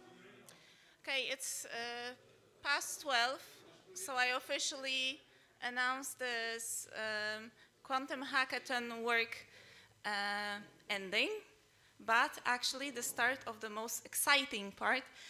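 A woman speaks calmly through a microphone and loudspeakers.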